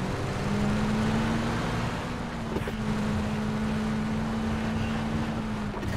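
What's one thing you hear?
A pickup truck engine drones steadily as the truck drives over rough ground.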